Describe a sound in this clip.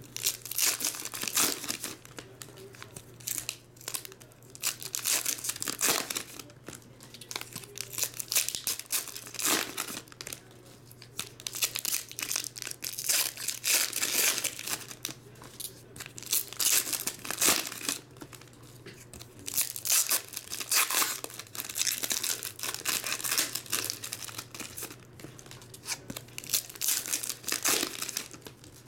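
Foil wrappers crinkle and rustle as they are torn open.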